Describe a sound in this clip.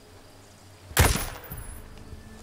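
A rifle fires a single sharp shot.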